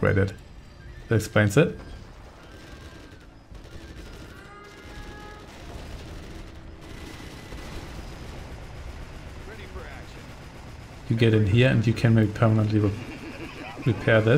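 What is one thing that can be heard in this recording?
Gunfire crackles and explosions rumble in a distant battle.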